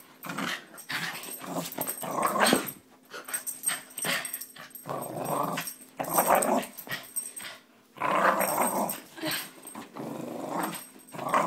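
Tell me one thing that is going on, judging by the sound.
A dog growls playfully in short bursts close by.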